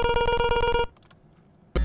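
A retro video game plays a held electronic tone, then cuts off.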